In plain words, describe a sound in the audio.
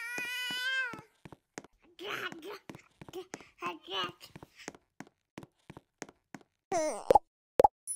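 Footsteps tap quickly on wooden boards.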